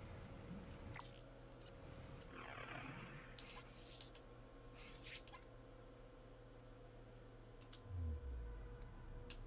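Game menu sounds click and whoosh as menus open and close.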